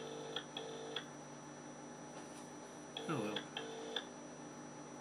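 A mobile phone beeps briefly as its keys are pressed.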